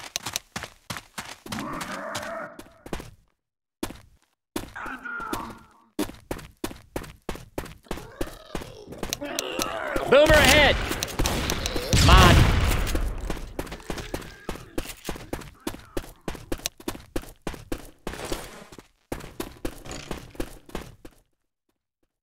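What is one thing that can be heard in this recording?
Footsteps tread quickly and steadily on stone.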